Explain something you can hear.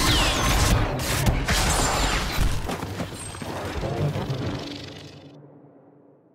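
A lightsaber hums and swings with sharp buzzing strokes.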